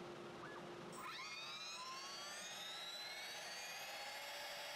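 A router motor whines as it spins up to speed.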